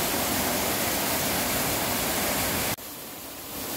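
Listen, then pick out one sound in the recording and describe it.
A waterfall roars steadily as it plunges into a pool.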